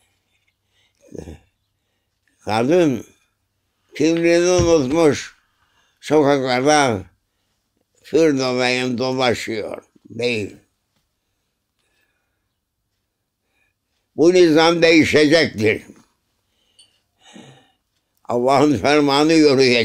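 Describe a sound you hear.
An elderly man speaks slowly and calmly in short phrases, close by, with silent pauses between them.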